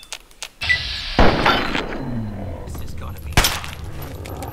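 A pistol fires a few sharp shots.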